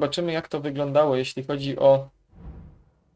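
A young man speaks with animation close to a microphone.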